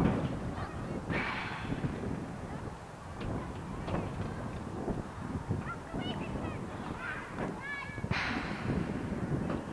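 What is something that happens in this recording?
Wind rushes and buffets loudly as a spinning boomerang flies through the air outdoors.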